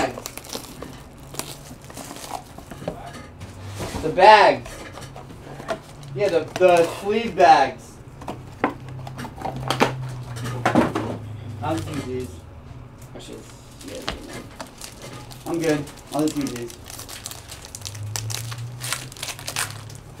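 Cardboard packs rustle and crinkle as hands handle them.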